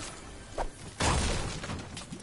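A pickaxe strikes wood with a hard thud.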